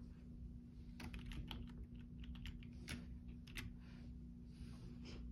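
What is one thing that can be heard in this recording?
Fingers tap keys on a keyboard, clicking quickly.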